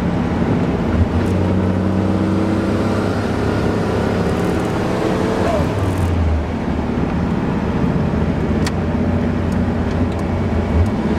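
A car engine drones loudly from inside the cabin at highway speed.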